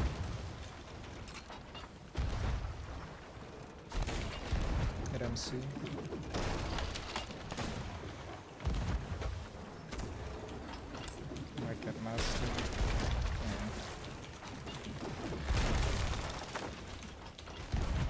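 Ocean waves rush against a wooden ship's hull.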